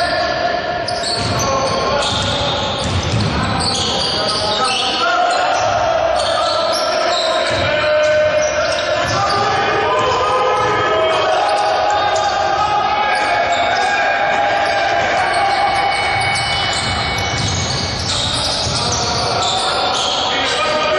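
Sneakers squeak sharply on a wooden court in an echoing hall.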